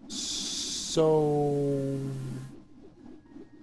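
A short game tune plays as a game ends.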